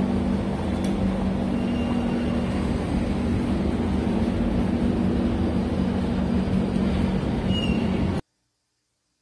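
A train's motors hum steadily while it stands at a platform.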